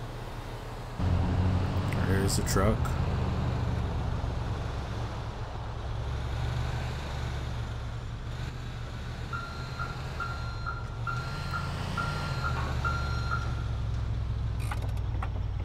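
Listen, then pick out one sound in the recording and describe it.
A truck engine rumbles loudly and steadily nearby.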